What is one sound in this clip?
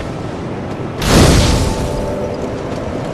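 A bonfire ignites with a sudden loud whoosh.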